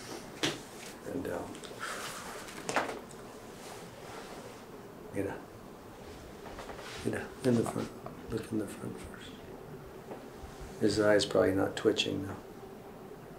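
A middle-aged man speaks calmly close by.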